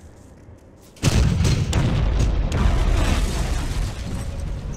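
Explosions boom loudly across open ground.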